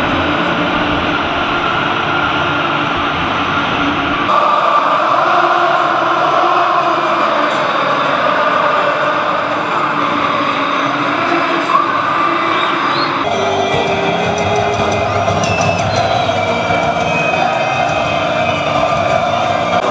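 A huge crowd chants and roars loudly in a stadium.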